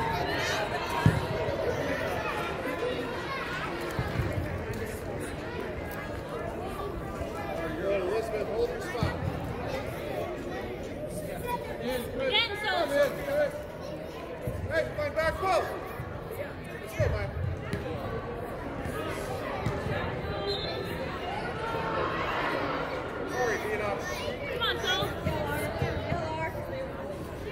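A crowd of spectators murmurs and calls out in a large echoing indoor hall.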